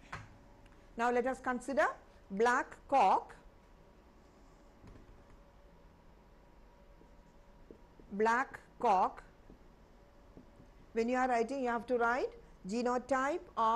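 A woman speaks clearly into a microphone, explaining at a measured pace.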